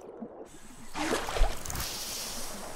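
A fish splashes out of water and slaps onto the ground.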